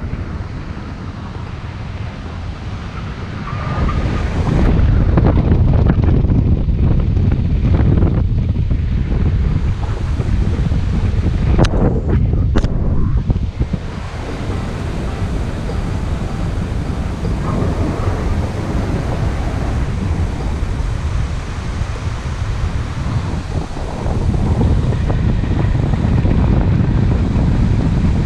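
Wind rushes loudly past a microphone, buffeting and roaring.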